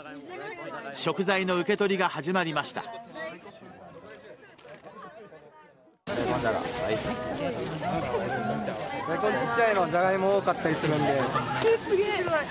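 Plastic bags rustle as they are handled.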